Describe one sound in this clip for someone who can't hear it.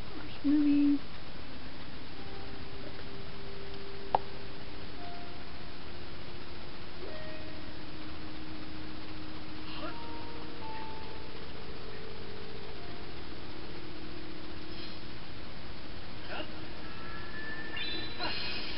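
Soft game music plays through a television speaker.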